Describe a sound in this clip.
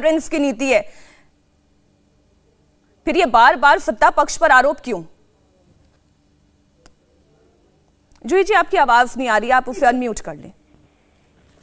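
A woman speaks with animation through a microphone, in short bursts with pauses.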